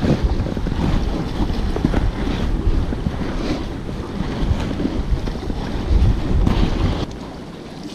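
Damp bait crumbles and rustles as a hand mixes it.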